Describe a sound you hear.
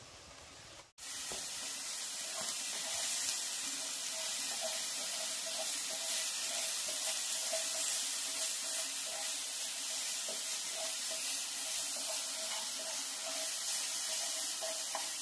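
Meat sizzles loudly in a frying pan.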